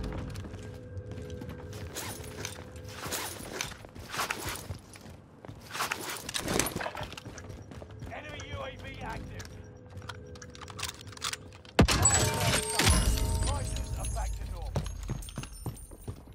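A gun clicks and clatters as it is handled.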